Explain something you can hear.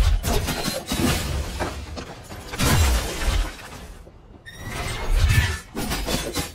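Sword blades slash and clash with sharp metallic hits.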